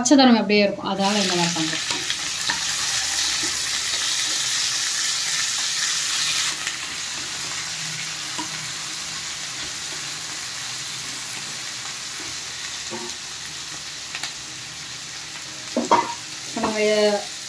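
Vegetables sizzle steadily in a hot pan.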